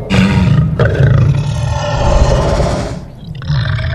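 A large beast roars with a deep, loud growl.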